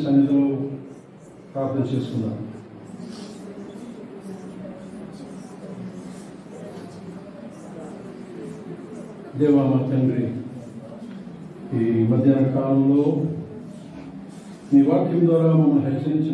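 A middle-aged man speaks slowly and calmly into a microphone, with long pauses.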